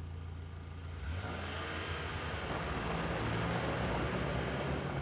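A car drives off over a dirt road.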